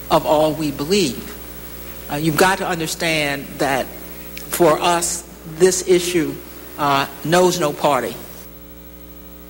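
A woman speaks calmly into a microphone, heard through a broadcast.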